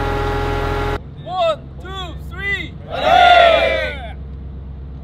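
A large group of young men shout together in unison outdoors.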